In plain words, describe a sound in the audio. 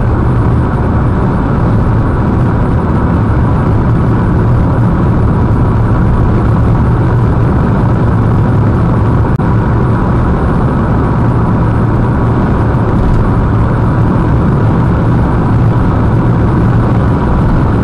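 Tyres roll with a steady rumble on the road.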